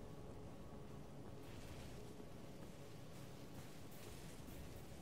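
Footsteps rustle quickly through dry leaves.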